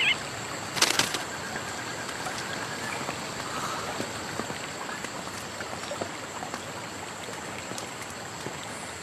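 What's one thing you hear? Footsteps scuff on bare rock.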